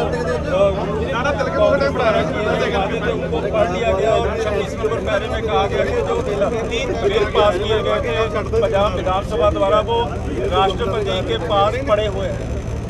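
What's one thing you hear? An engine hums steadily in the background.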